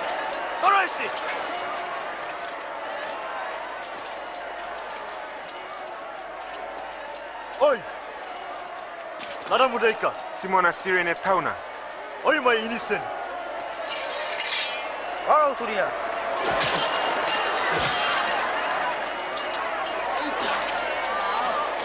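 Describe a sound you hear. A large crowd murmurs and jeers throughout.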